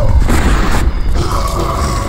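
A lightning spell crackles.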